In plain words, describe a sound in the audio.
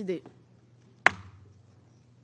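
A gavel strikes a desk once with a sharp knock.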